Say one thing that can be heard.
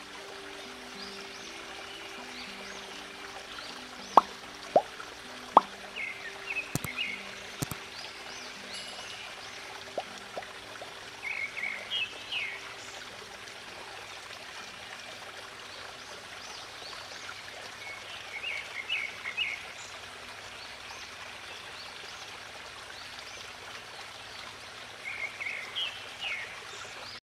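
Water from a waterfall rushes and splashes steadily.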